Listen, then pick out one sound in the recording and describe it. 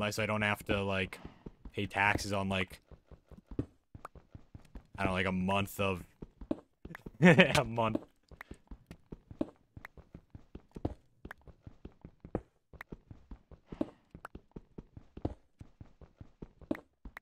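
A pickaxe taps rapidly on stone.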